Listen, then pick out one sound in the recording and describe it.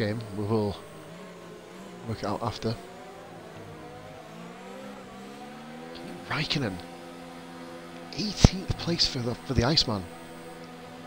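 A racing car engine hums steadily, its pitch slowly rising and falling.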